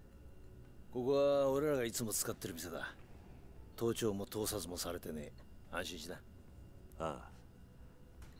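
A man speaks in a low, relaxed voice.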